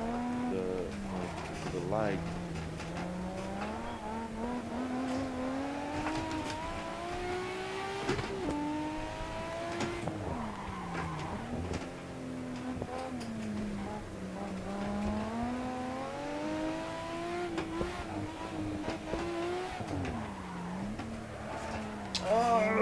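A car engine revs up and down as it races along.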